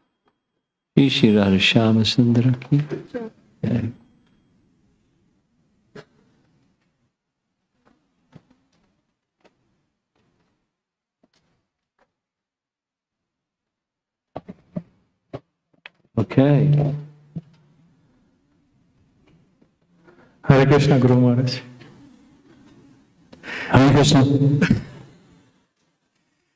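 An elderly man speaks calmly into a microphone, in bursts with long pauses.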